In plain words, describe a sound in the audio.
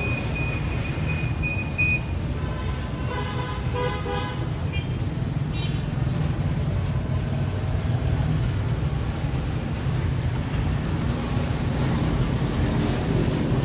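A treadle sewing machine whirs and clatters steadily.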